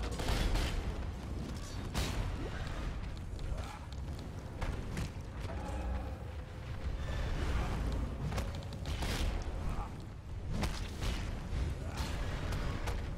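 Fire spells roar and crackle in bursts.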